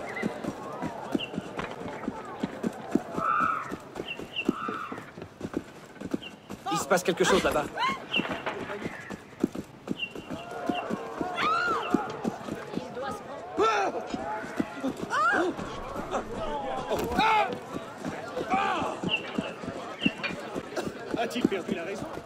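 Footsteps run quickly over cobblestones.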